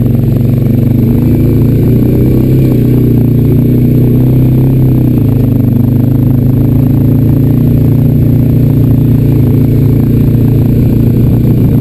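A quad bike engine rumbles loudly and steadily up close.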